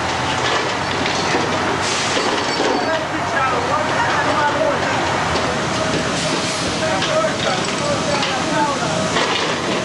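Water rushes and churns loudly close by.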